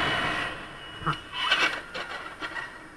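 A scooter crashes into a car with a clatter.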